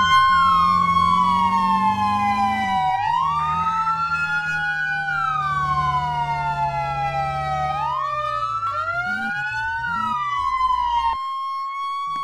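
A fire engine's motor rumbles as the truck drives.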